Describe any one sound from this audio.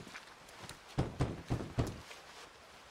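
A fist knocks on a wooden door.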